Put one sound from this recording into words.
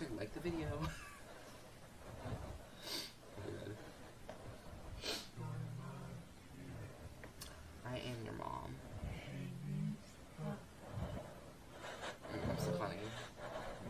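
A teenage boy laughs.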